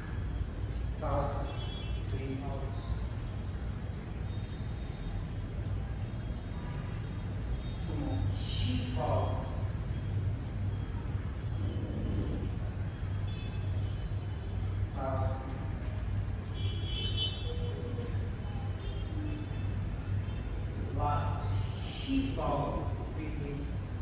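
A man speaks calmly, giving instructions in a large echoing room.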